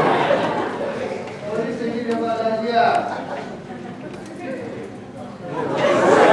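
A man speaks loudly in an echoing hall.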